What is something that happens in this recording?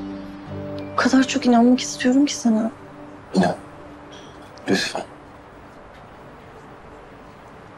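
A young woman speaks softly and with emotion close by.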